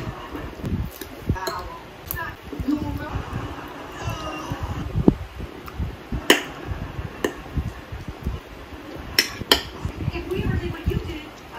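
Metal cutlery clinks and scrapes against a ceramic plate.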